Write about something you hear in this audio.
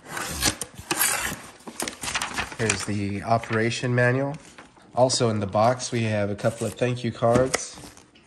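Cardboard flaps scrape and bump.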